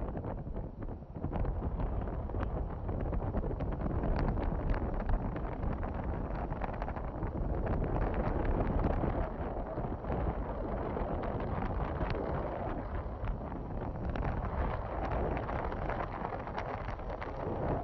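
Wind rushes and buffets against the microphone outdoors.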